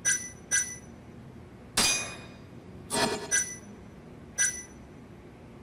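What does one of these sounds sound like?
Short bright menu chimes blip as a selection moves.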